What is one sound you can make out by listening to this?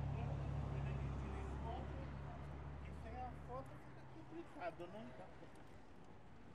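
Men talk casually close by as they walk past.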